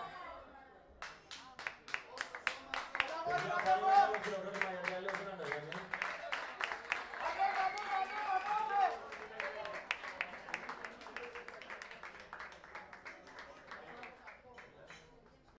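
An audience claps steadily, the clapping slowly thinning out.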